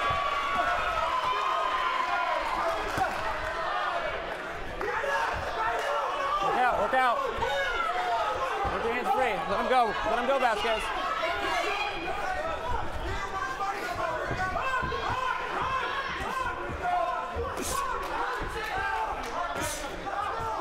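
Boxing gloves thud as punches land.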